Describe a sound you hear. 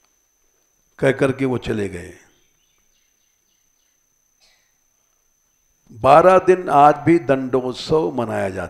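An elderly man speaks calmly and with pauses into a headset microphone.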